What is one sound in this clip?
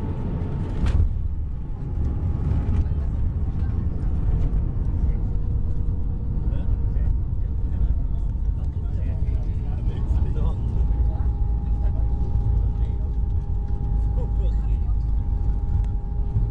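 Airliner tyres rumble loudly along a runway.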